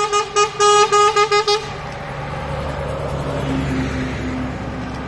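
A bus engine rumbles as the bus drives past close by.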